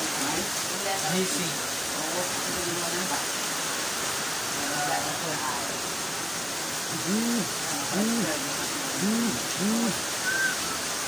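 A teenage boy talks calmly close by.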